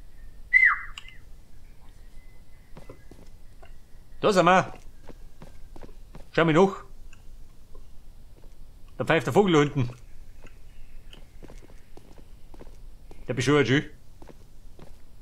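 Footsteps walk at a steady pace across a hard floor.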